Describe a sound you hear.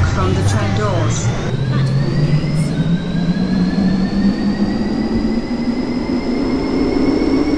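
A train's electric motor whines, rising in pitch as it speeds up.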